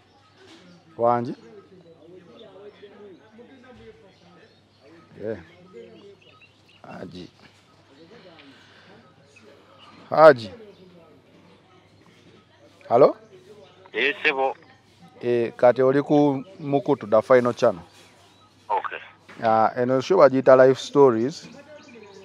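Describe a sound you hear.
A young man speaks in short bursts into a phone, heard close up.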